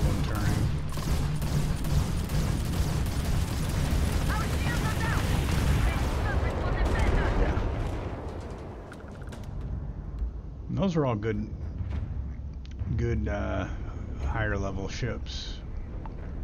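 A spaceship engine roars with a deep, steady rumble.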